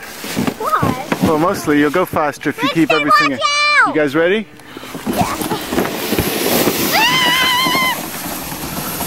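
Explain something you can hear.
A plastic sled scrapes and hisses over snow.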